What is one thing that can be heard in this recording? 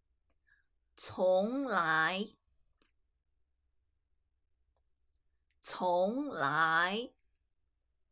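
A young woman speaks clearly and slowly into a microphone.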